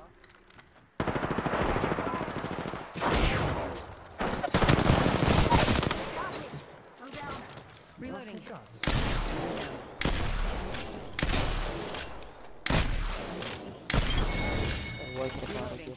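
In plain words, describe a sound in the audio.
Gunfire bursts loudly and repeatedly.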